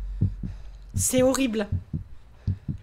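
A young woman screams close to a microphone.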